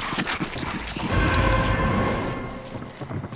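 A short chime sounds as an item is picked up.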